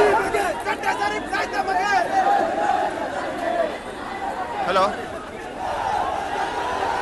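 A crowd of men shouts and chants loudly outdoors.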